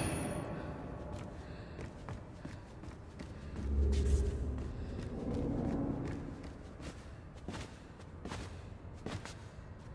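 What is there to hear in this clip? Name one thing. Light footsteps patter on a hard floor.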